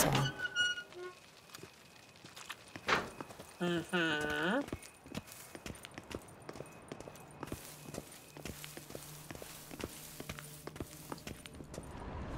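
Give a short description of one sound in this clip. Footsteps thud on stone floor and steps, echoing in a vaulted space.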